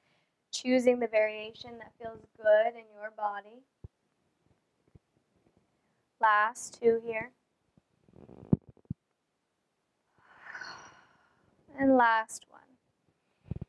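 A young woman speaks calmly and clearly, close to a microphone.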